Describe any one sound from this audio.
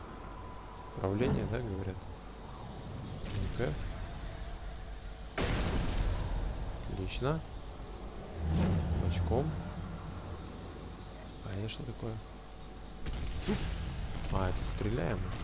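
A large beast growls and snarls nearby.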